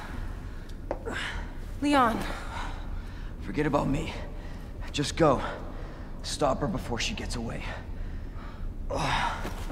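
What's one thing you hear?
A young man speaks weakly, with strained breaths.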